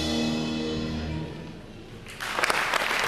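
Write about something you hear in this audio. A band plays a held final chord that fades out.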